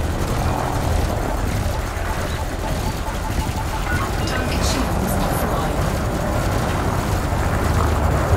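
Mining lasers whine steadily.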